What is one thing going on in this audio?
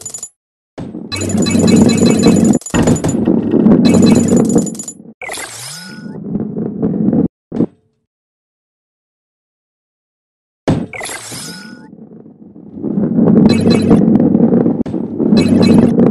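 A ball rolls with a low rumble along a track.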